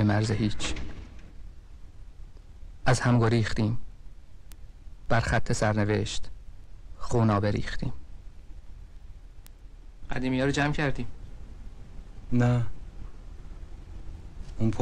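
A man speaks calmly and slowly in short phrases with pauses, close by.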